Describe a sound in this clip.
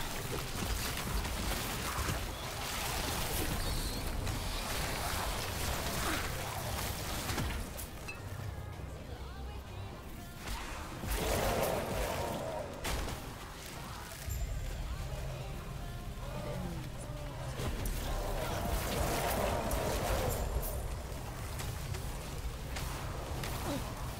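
Magic blasts and weapon hits crash and burst in a fierce fight.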